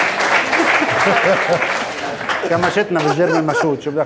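An older man laughs heartily.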